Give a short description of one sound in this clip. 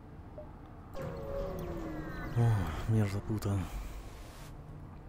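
A spaceship's engine charges up and whooshes away in a rising, sweeping rush.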